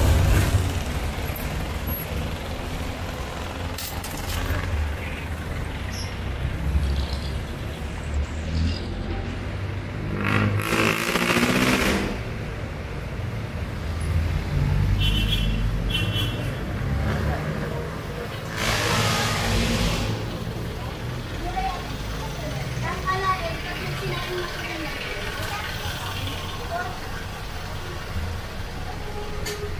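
Traffic rumbles steadily on a city street outdoors.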